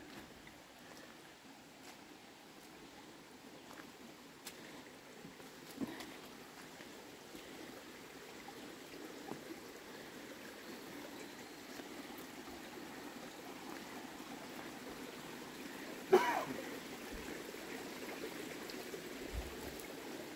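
A shallow stream trickles softly over stones.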